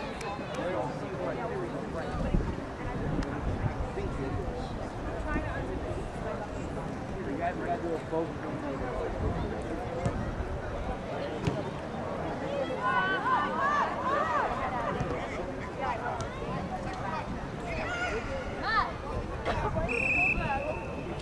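Young players shout and call out to each other in the distance outdoors.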